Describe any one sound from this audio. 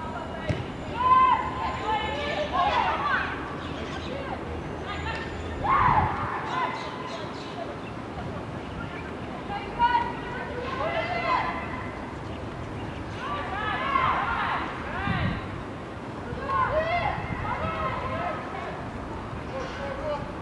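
Young women shout and call out to each other in the open air, some distance away.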